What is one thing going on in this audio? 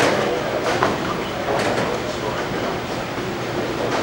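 A bowling ball rolls down a wooden lane with a low rumble.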